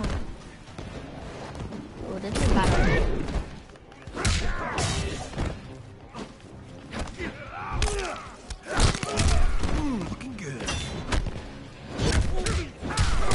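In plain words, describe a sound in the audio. Heavy punches and kicks land with loud thuds.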